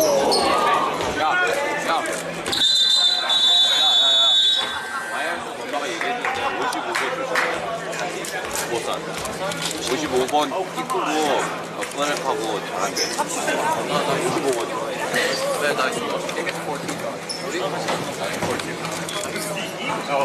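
A crowd of voices chatters and calls out in a large echoing hall.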